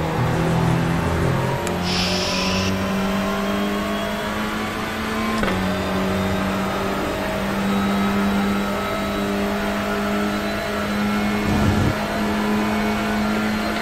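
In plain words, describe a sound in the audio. A racing car engine roars steadily, shifting gears as it speeds along.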